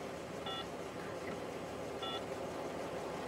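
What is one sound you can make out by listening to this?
A phone beeps as keys are pressed.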